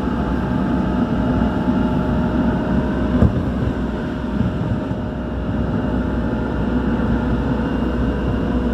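An electric commuter train rumbles along the track, heard from inside a carriage.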